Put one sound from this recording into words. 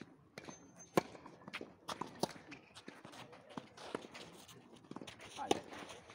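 Tennis balls are struck sharply with rackets outdoors.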